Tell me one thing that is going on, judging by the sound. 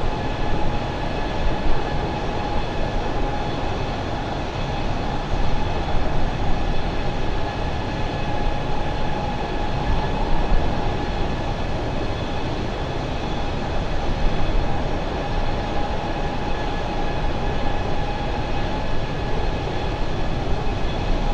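Jet engines roar steadily with a constant high whine.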